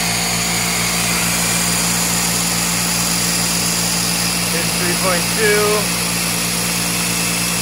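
An electric machine hums steadily nearby.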